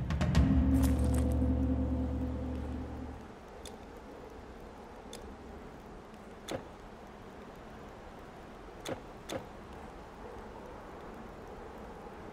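Soft clicks sound as game menus open and close.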